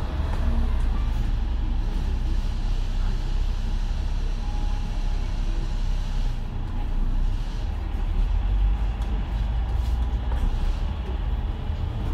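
A bus engine rumbles low and steady close by.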